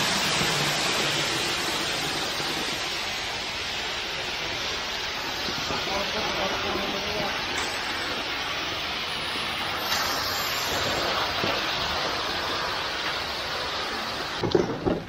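Wet concrete pours and hisses steadily down a metal chute.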